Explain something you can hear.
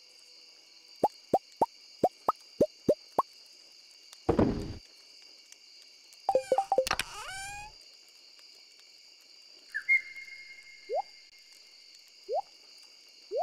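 Short plucky pops sound quickly one after another as items are moved in a game menu.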